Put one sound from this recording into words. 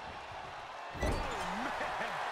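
A wrestler thuds hard into the ring corner.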